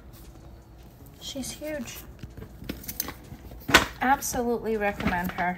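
A leather handbag creaks and rustles as hands handle it.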